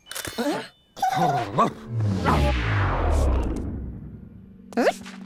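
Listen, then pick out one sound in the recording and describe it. A cartoon dog grunts with effort while heaving a heavy sack.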